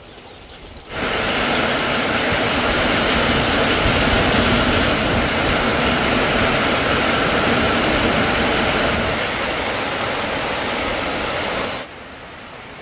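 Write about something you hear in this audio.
Heavy rain pours down onto wet ground and puddles outdoors.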